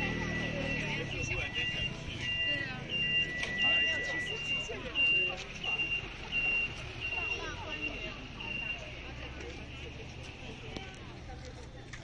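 A bus engine idles nearby.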